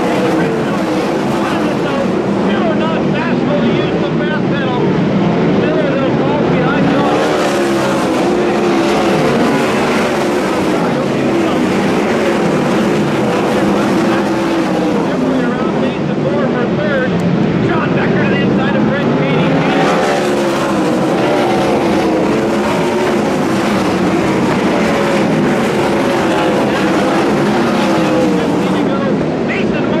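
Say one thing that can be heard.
Racing car engines roar loudly and rise and fall in pitch as the cars speed past.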